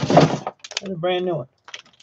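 Plastic wrapping crinkles and rustles up close.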